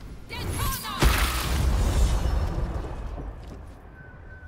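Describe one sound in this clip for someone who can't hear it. A magic storm spell crashes with a loud thunderous boom.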